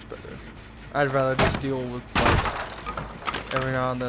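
Wooden boards crash and splinter.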